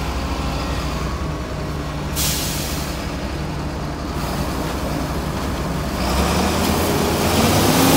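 Grain pours from a spout into a truck trailer with a rushing hiss.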